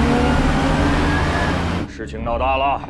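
A car engine rumbles loudly nearby.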